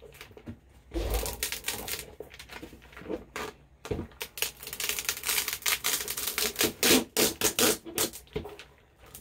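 A sticky sheet crackles and rustles as hands peel it from a canvas.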